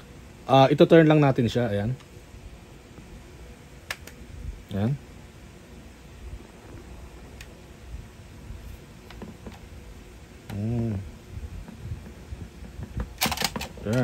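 A screwdriver scrapes and clicks against hard plastic.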